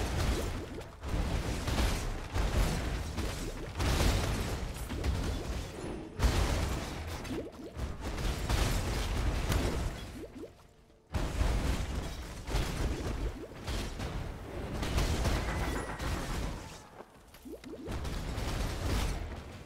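Rapid magic blasts and explosions burst in a computer game.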